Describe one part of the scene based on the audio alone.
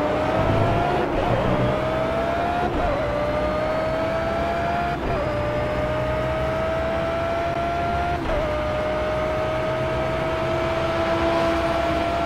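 A racing car engine revs high and climbs through the gears, dropping briefly at each gear shift.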